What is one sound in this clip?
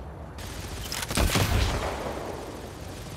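Gunfire blasts in a game.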